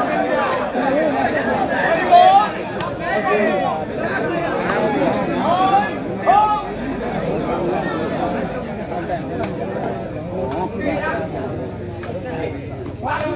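A large outdoor crowd chatters and shouts with many overlapping voices.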